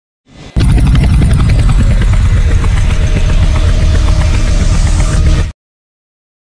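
A helicopter's rotors thump loudly and steadily.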